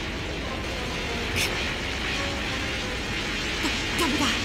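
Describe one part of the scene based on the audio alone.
A young man grunts and yells with strain.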